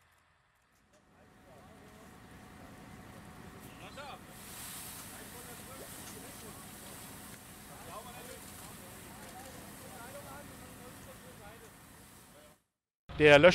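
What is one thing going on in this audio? Water sprays from a fire hose with a steady hiss.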